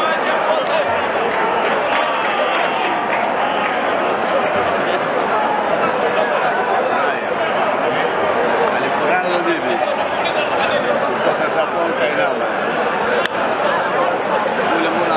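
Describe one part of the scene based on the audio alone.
A large crowd murmurs and chatters all around, outdoors.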